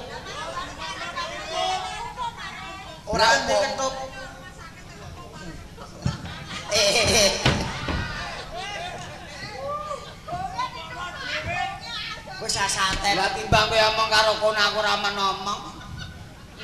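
A second young man answers through a microphone.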